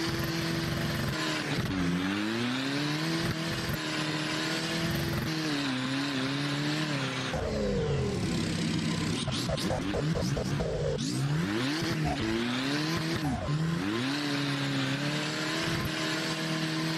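A car engine revs hard, rising and falling in pitch.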